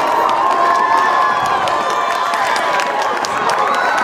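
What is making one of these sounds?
Young men shout excitedly in celebration.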